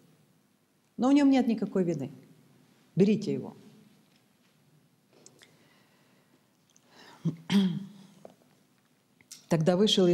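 A middle-aged woman speaks calmly into a microphone, with pauses.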